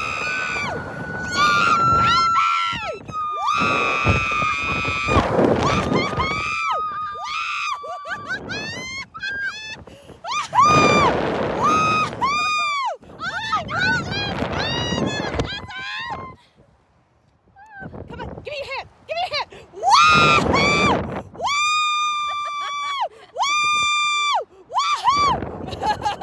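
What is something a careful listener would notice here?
Two women scream and shriek loudly close by.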